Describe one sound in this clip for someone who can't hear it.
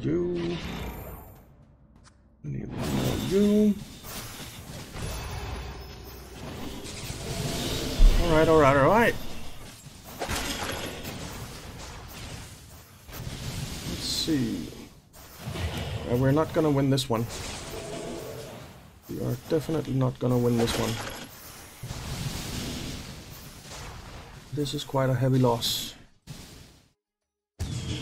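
Weapons clash and spells burst in a fast battle.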